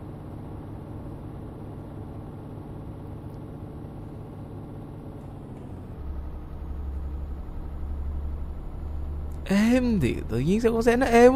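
A truck engine rumbles steadily with a low drone.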